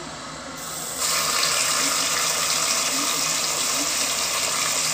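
Meat hisses and sizzles loudly as it fries in hot oil.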